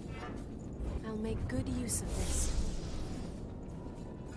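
A deep magical blast whooshes and rumbles.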